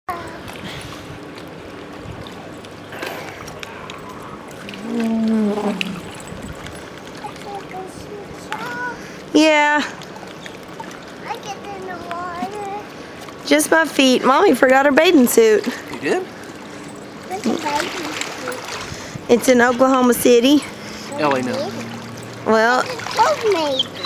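Water splashes and laps as the swimmers paddle.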